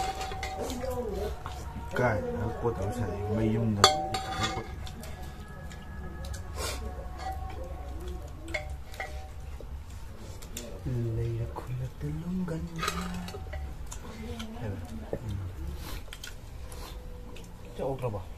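Utensils clink against plates.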